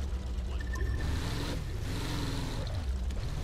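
Water splashes against a boat's hull.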